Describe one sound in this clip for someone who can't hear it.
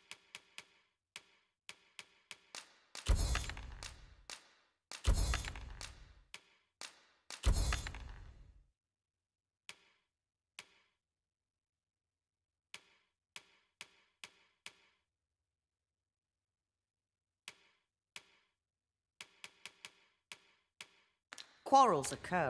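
Soft menu clicks tick quickly, one after another.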